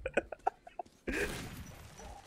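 A gun fires a loud shot that echoes briefly.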